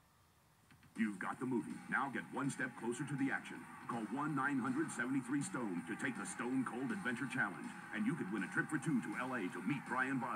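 A man speaks forcefully through a television speaker.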